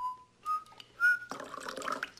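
Liquid pours into a cup.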